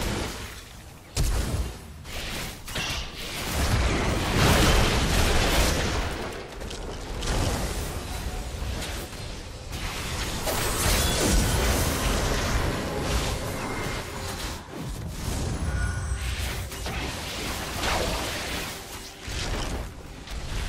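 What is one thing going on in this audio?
Magic spells and weapons clash and burst in quick succession.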